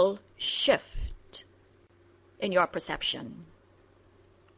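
A woman speaks briefly and cheerfully close by.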